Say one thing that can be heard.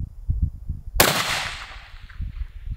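A rifle fires a single loud, close shot that rings out and fades.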